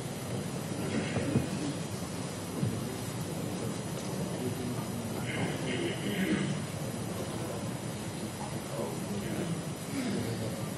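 A man speaks steadily into a microphone in a large hall.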